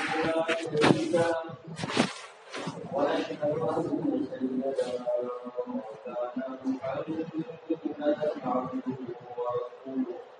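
A man preaches with animation through a microphone and loudspeakers in an echoing room.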